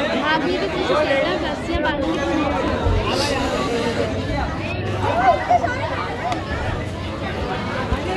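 A crowd of men shouts and talks excitedly close by.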